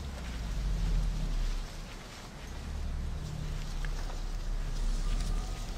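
Footsteps rustle through dense plants.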